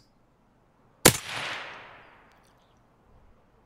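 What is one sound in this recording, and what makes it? A rifle fires a single loud shot that echoes away through the woods.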